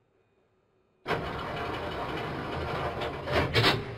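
Subway train doors slide shut with a thud.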